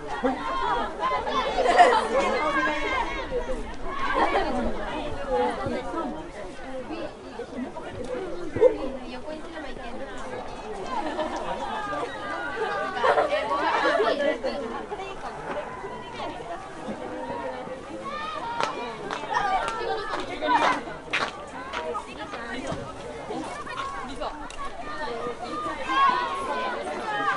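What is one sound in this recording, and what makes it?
Young women shout and call to each other across an open field outdoors.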